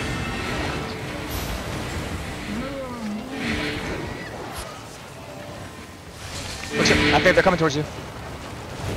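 Battle sound effects crackle and boom in a fast video game fight.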